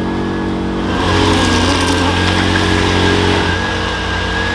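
A small engine revs hard.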